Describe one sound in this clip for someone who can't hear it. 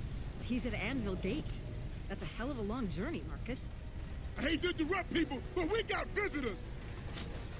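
A young woman speaks quietly and anxiously.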